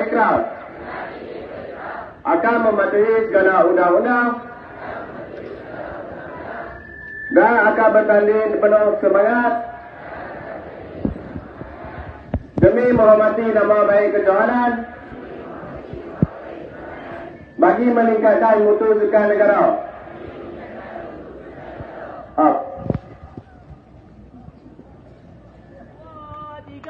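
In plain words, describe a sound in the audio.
A young man reads out through a loudspeaker outdoors.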